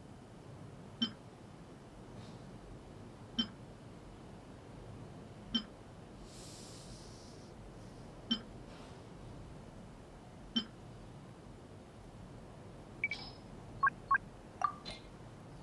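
Short menu clicks sound at regular intervals.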